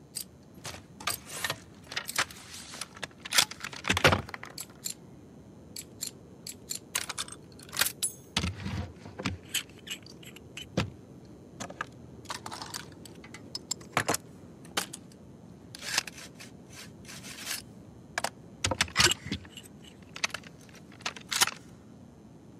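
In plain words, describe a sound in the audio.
Metal gun parts click and clank sharply, on and off.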